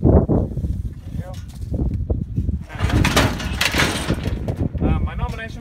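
Metal gates rattle and clang as a cow shifts against them.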